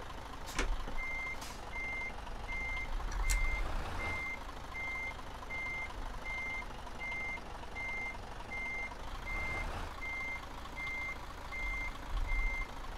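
A truck's reversing alarm beeps in a steady rhythm.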